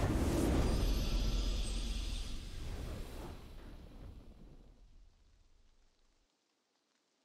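A booming victory fanfare plays and slowly fades away.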